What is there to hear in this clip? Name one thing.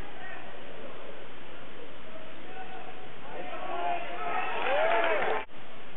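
A crowd of spectators talks and cheers in a large echoing gym, growing louder.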